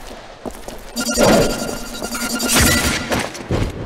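A gun fires loudly.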